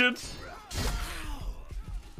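A blade strikes with a heavy thud.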